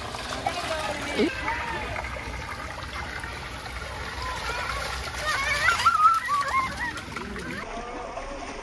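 Young children shout and squeal playfully nearby.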